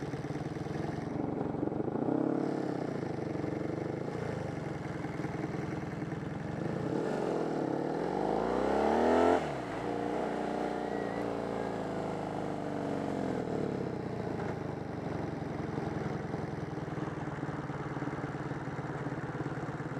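A motorcycle engine roars close by, revving up and down as it rides.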